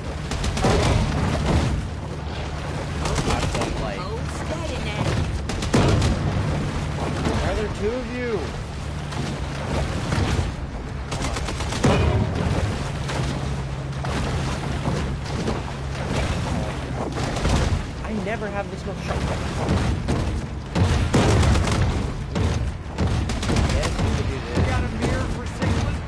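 A motorboat engine drones steadily.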